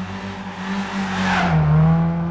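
A car rushes past close by.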